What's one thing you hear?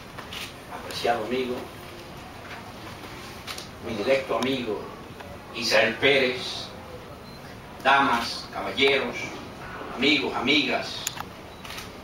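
A middle-aged man speaks slowly and with pauses into a microphone, heard through a loudspeaker in an echoing hall.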